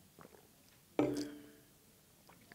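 A glass knocks down onto a table.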